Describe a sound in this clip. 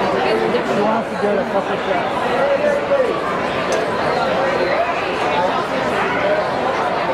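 Several adults talk and call out at once nearby.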